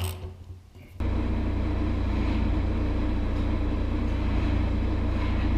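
A machine engine runs with a loud, steady rumble.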